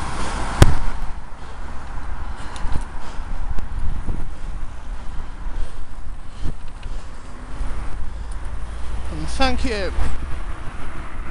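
Bicycle tyres roll over wet tarmac.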